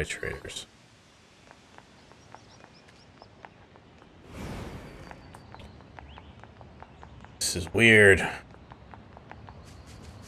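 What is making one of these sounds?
Quick footsteps patter over grass and stone.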